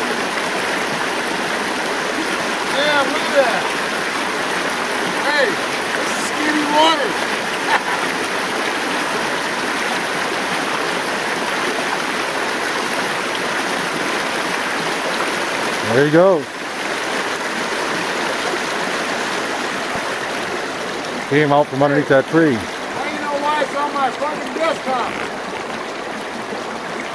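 A shallow river rushes and babbles over rocks.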